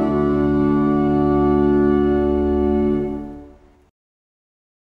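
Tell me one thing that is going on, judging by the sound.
A small choir sings together and fades out.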